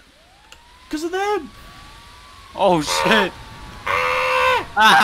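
A fire engine siren whoops repeatedly.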